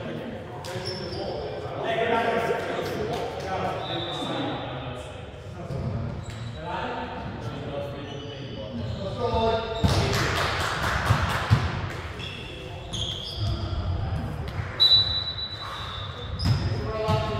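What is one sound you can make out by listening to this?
Young men talk and call out across a large echoing gym.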